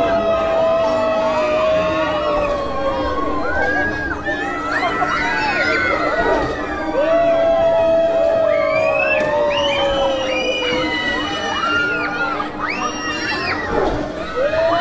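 A swinging ship ride creaks and rumbles as it sways.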